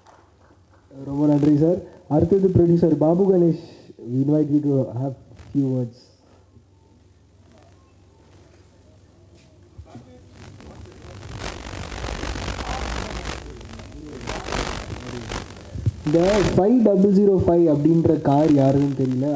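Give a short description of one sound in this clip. A young man speaks with animation into a microphone over a loudspeaker.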